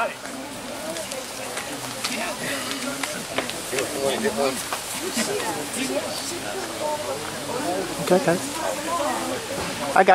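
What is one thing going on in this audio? An elderly man speaks calmly to a small group outdoors.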